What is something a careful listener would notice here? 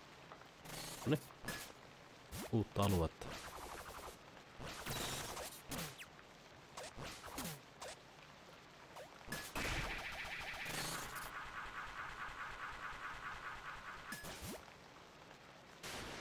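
A sword swishes and clangs in quick strikes.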